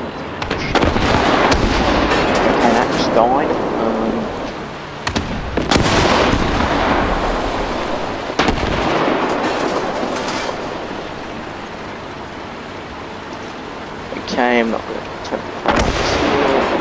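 Shells explode with loud booms.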